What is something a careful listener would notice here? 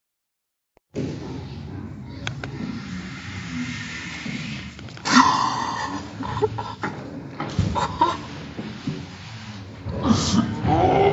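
Teenage boys laugh and shout.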